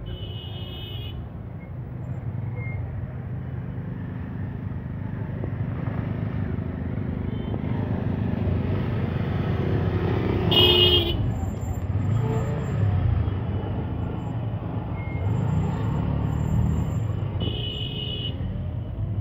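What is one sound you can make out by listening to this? Vehicle horns honk in short bursts.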